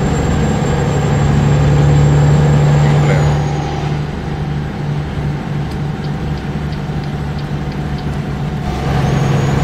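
A heavy truck engine drones steadily, easing off and then pulling harder again.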